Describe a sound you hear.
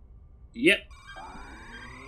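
An electronic tone rises steadily.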